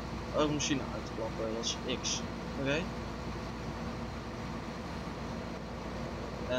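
A combine harvester's engine idles with a steady low rumble.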